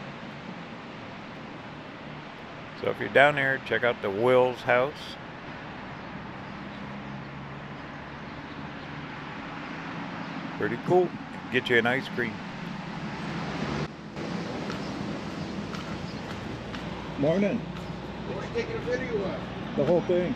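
Traffic hums faintly along a street outdoors.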